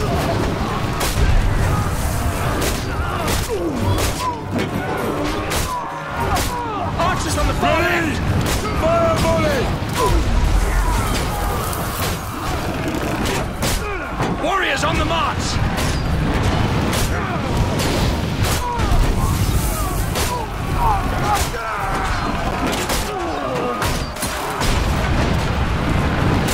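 A heavy bolt thrower fires again and again with sharp thuds.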